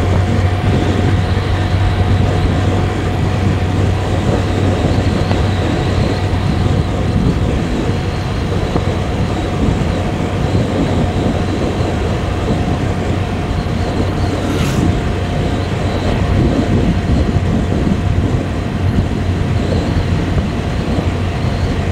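Tyres roar on asphalt.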